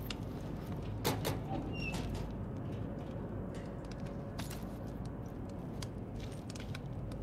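A metal locker door clanks open.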